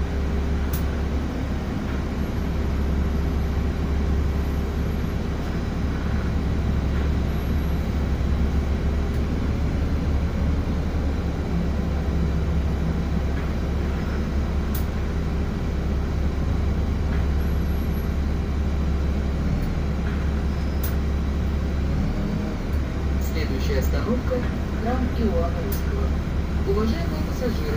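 A bus engine hums low and steady from inside the bus.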